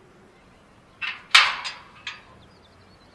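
A metal gate lock rattles and clanks.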